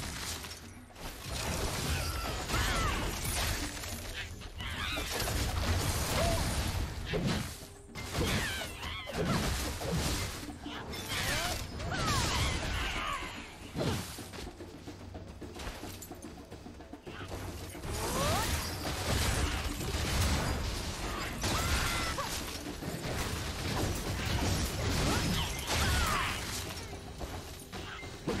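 Sword strikes and magic blasts clash loudly in a fast game fight.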